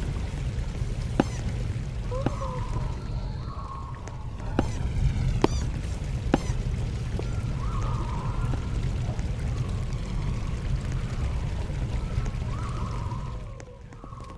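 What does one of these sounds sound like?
Water flows in a stream.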